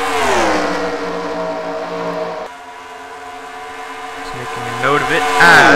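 Race car engines roar at high revs, shifting in pitch as the cars pass.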